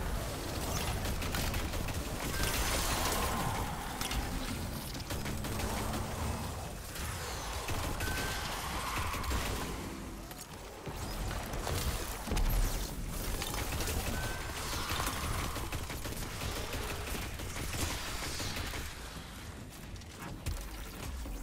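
Gunfire and energy blasts from a game crackle and boom throughout.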